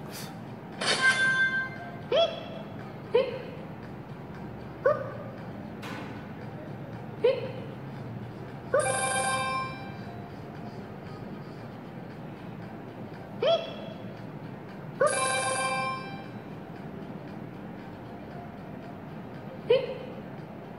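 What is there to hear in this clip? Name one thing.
Bright game chimes ring out in short bursts.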